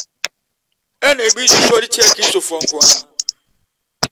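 A man speaks with animation through a microphone on an online call.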